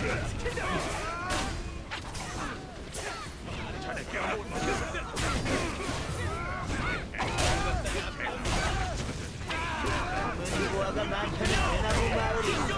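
Blades clash and strike in a busy fight.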